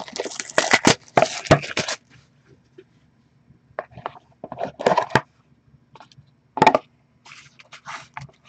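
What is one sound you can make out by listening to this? Cardboard boxes scrape and rustle as hands open and handle them close by.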